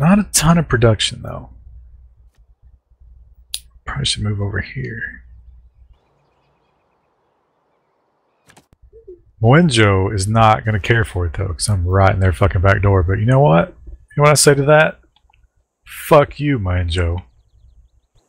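A man talks casually into a microphone, heard as if over an online call.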